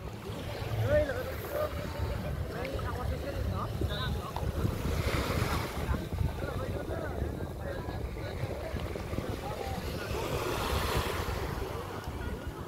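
Small waves splash and lap at the shore.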